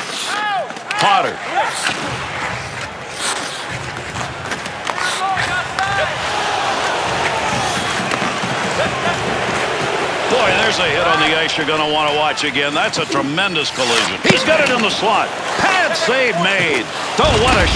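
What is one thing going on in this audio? A crowd in a large hockey arena cheers.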